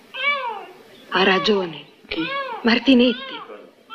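A young boy asks a short question quietly.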